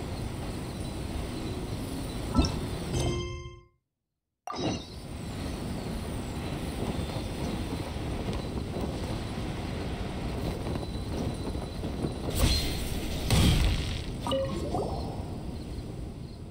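Wind rushes steadily past while gliding through the air.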